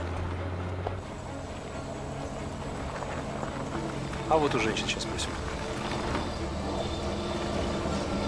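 A car engine rumbles as a car drives slowly through tall grass.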